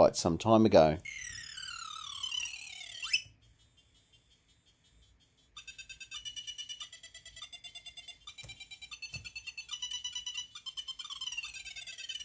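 Electronic video game music beeps and chirps from a small speaker.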